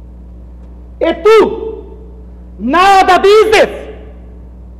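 A man speaks loudly and theatrically, heard through a microphone.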